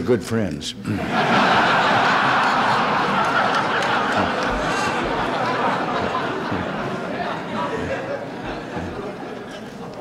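An audience laughs loudly together.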